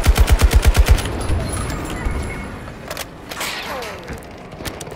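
An assault rifle magazine clicks out and in during a reload.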